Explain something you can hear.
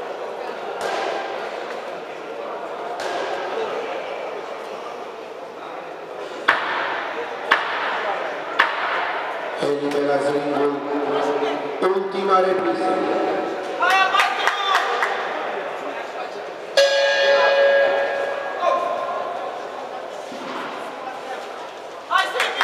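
Voices murmur throughout a large echoing hall.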